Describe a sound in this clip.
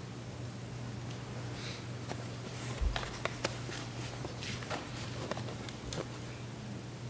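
Papers rustle and shuffle on a table close by.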